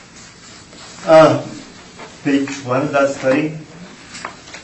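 A man speaks briefly and calmly, a little away from the microphone.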